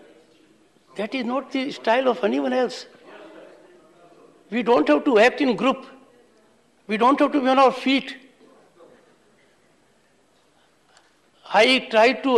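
An elderly man speaks firmly into a microphone in short bursts, in a large echoing hall.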